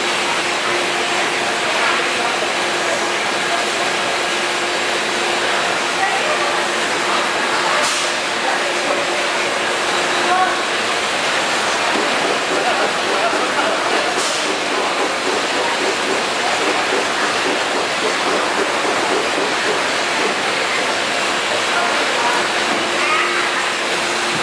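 A labelling machine whirs and rattles steadily.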